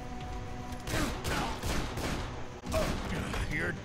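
A pistol fires several sharp shots in quick succession.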